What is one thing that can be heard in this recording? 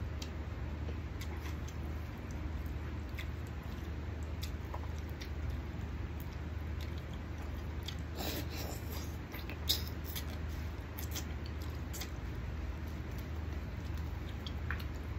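A man sucks and bites meat off a bone with wet smacking sounds, close by.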